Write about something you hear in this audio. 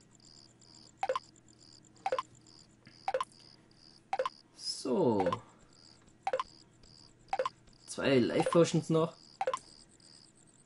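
A game's crafting sound clicks briefly, again and again at a steady pace.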